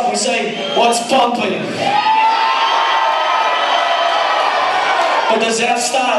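A man raps loudly into a microphone.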